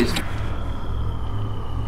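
An energy blast bursts with a sharp crackle.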